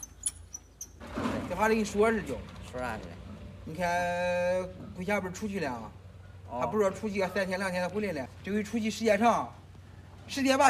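A middle-aged man talks with animation outdoors.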